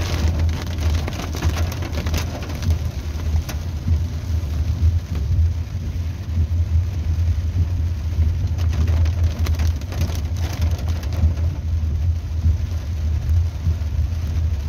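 Raindrops patter on a car windshield.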